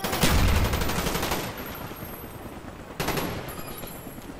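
A rifle fires a rapid burst of shots, then a single shot.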